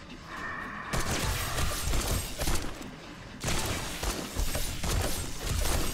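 A gun fires in rapid bursts of loud, sharp shots.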